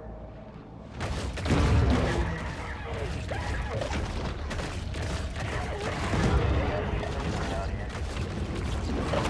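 Creatures clash loudly with heavy thuds and crashing blows.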